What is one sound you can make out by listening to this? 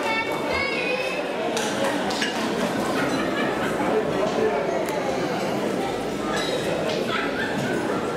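Many voices chatter and murmur together nearby.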